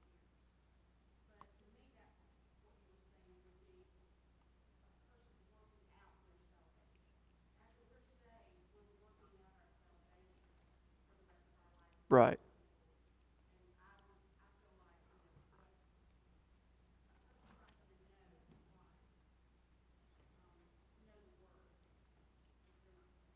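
A man speaks calmly and at length, heard from a distance in a large echoing hall.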